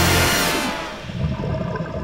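Air bubbles gurgle and rush upward from a diver's breathing gear underwater.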